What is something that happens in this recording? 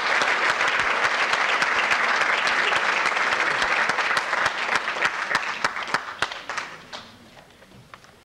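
A crowd applauds loudly, then the clapping thins out and dies away.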